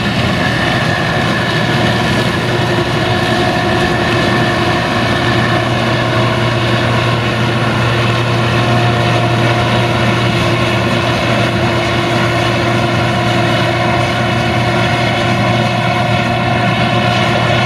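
Corn stalks crackle and rustle as a combine harvester cuts through them.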